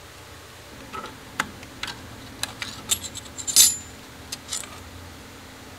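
A screwdriver scrapes and clicks against metal.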